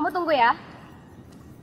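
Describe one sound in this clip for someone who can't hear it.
A young woman speaks into a phone.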